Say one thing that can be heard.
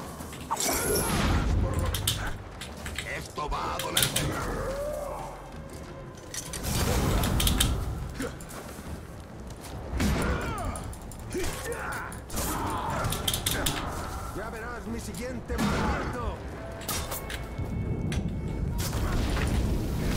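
Swords clash and strike in a game fight.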